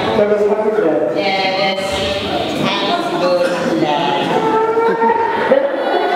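A young man speaks with animation through a microphone in a large echoing hall.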